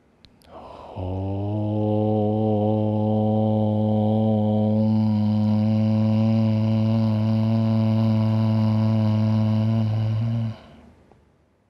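A young man chants a long, steady om through a headset microphone.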